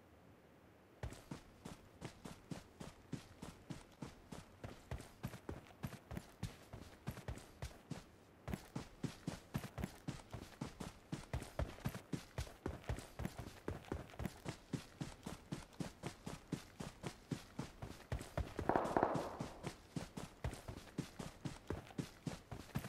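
Footsteps thud quickly and steadily on grass.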